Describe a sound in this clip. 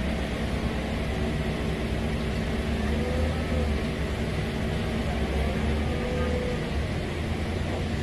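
A man calls out to a forklift driver.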